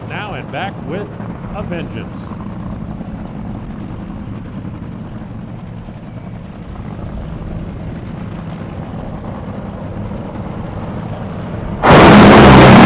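A dragster engine idles with a deep, rough rumble.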